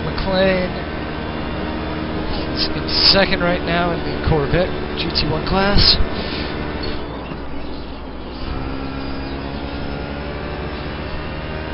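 A racing car engine hums steadily through loudspeakers.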